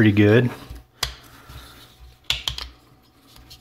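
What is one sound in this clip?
Small clicks and knocks come from handling a wooden piece.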